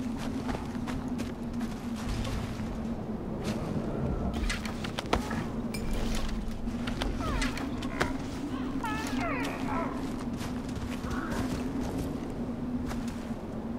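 Footsteps crunch on dry grass and leaves.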